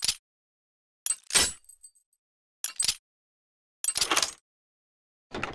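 A lock pick clicks sharply against metal tumblers.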